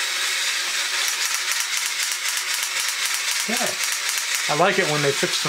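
A toy's mechanism clicks rapidly as it is wound up.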